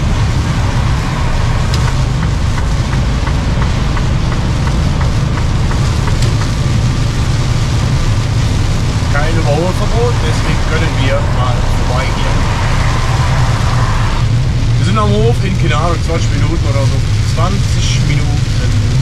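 An engine rumbles steadily from inside a moving vehicle.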